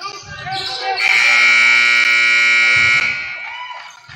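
A loud buzzer sounds steadily in a large echoing gym.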